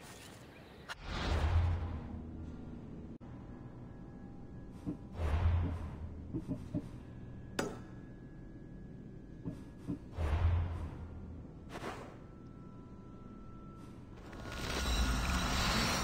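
Soft deep whooshes sound as menus open and change.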